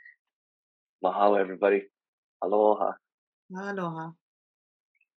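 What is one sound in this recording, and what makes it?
A man speaks cheerfully over an online call.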